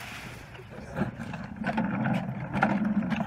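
A mop bucket rolls across a hard floor.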